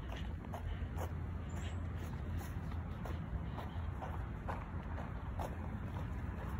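Footsteps crunch softly on wood chips.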